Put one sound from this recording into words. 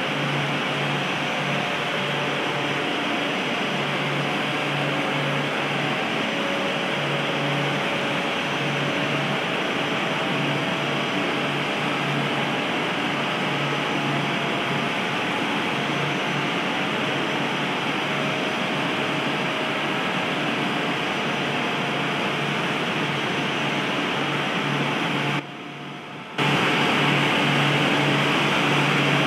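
Jet engines hum and whine steadily as an airliner taxis.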